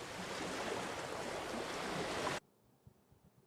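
A recording of ocean waves rushes steadily.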